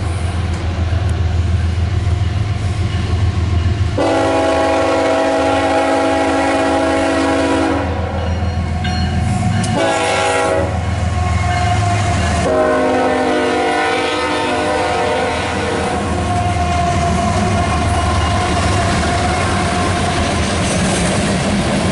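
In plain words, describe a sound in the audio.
A diesel locomotive rumbles past close by.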